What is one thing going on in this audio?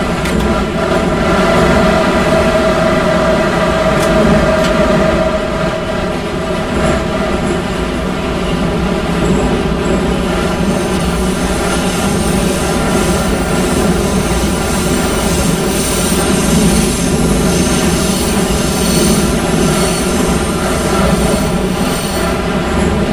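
A subway train rumbles and whines steadily through a tunnel.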